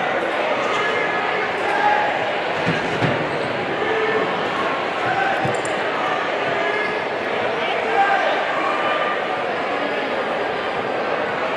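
A crowd murmurs and chatters throughout a large echoing gym.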